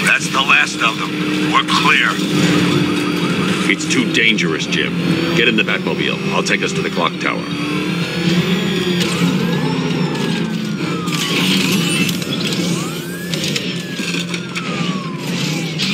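A powerful car engine roars steadily.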